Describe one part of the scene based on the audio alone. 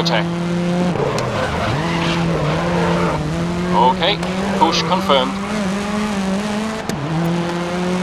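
A racing car engine drops briefly as the gears shift up.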